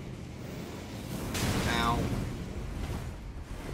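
A fiery blast roars and crackles.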